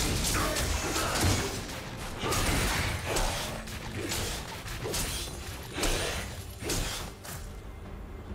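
Fiery spell effects whoosh and crackle in a video game.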